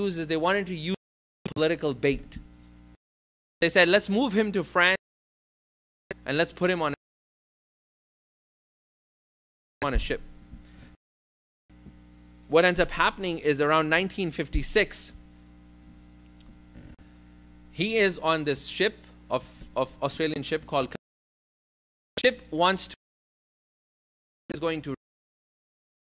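A middle-aged man speaks calmly and with emphasis into a microphone, with pauses.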